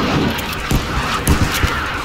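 A rifle bolt clicks and rattles as it is reloaded.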